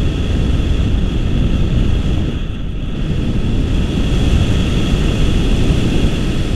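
Strong wind buffets a microphone loudly and steadily, as in flight high outdoors.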